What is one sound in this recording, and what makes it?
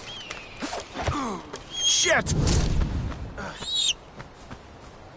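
A large bird of prey screeches loudly close by.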